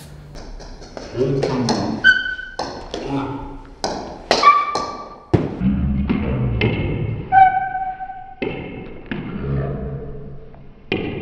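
A ping-pong ball clicks against paddles and the table.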